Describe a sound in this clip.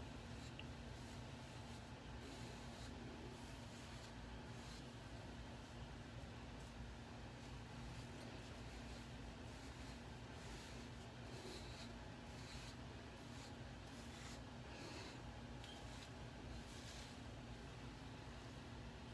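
A brush sweeps through hair in soft, repeated strokes.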